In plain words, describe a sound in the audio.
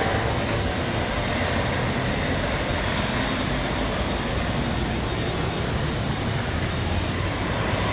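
A city bus engine hums as the bus pulls past close by.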